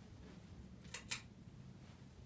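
A pull chain on a light fixture clicks twice.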